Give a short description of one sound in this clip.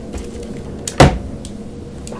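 A soft interface click sounds as a menu option is chosen.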